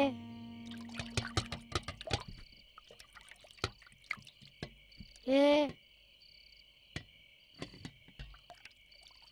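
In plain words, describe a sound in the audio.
Metal pots clink as a small child washes them.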